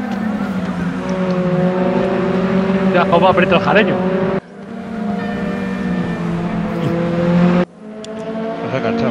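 Racing car engines roar loudly, rising and falling in pitch as the cars speed past.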